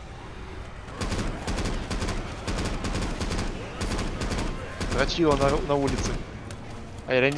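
A rifle fires rapid bursts of gunshots indoors.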